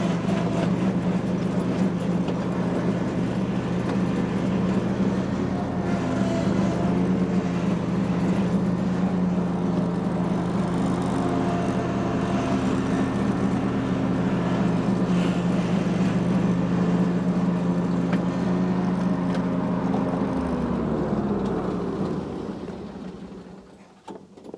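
A mower engine hums loudly and steadily, then winds down.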